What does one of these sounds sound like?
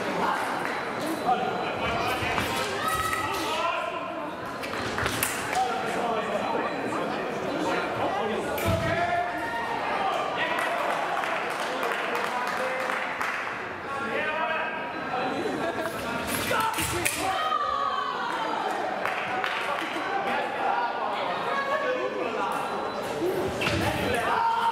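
Fencers' feet stamp and slide quickly on the floor.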